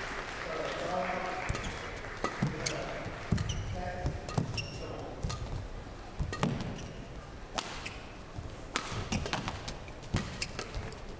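Shoes squeak on an indoor court.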